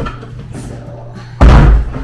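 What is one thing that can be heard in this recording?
A chair bumps and rattles as it is moved.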